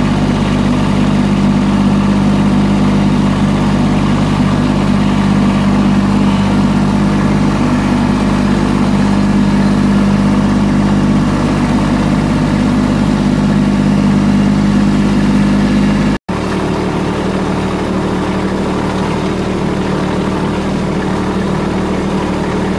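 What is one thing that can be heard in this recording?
A compact diesel tractor's engine chugs as the tractor drives along.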